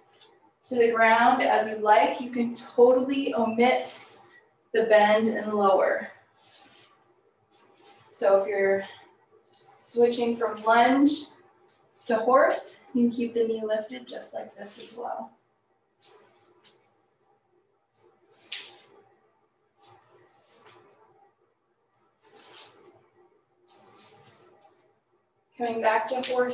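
A woman speaks calmly and steadily, close to a microphone, with pauses between phrases.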